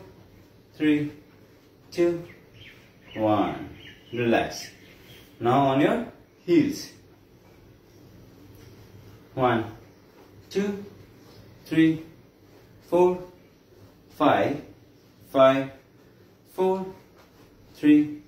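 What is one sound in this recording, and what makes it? A man counts aloud in short, clear bursts close by.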